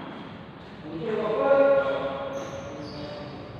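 A young man calls out loudly across the echoing hall.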